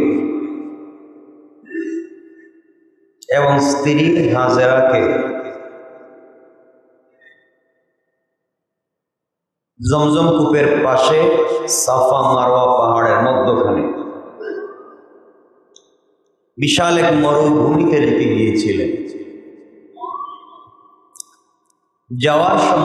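A young man chants in long, drawn-out phrases into a microphone, with a reverberant echo through loudspeakers.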